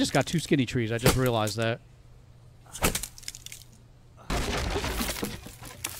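An axe chops into a tree trunk with sharp thuds.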